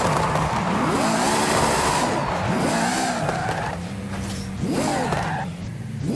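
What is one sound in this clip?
Car tyres screech while spinning on the spot.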